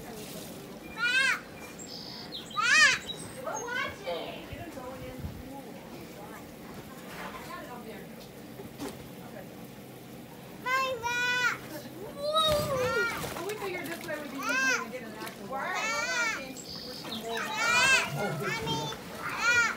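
A young child squeals and babbles nearby, outdoors.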